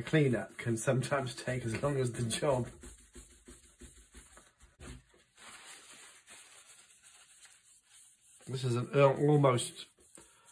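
A cloth rubs along a metal gun barrel.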